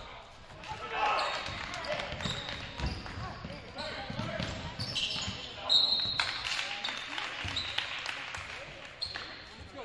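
A crowd of spectators cheers and shouts in an echoing gym.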